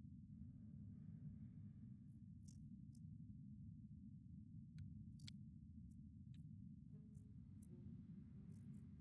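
A young man speaks quietly and calmly into a microphone nearby.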